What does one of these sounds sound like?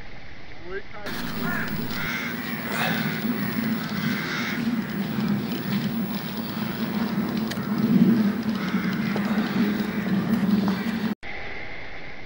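A large flock of crows caws noisily overhead.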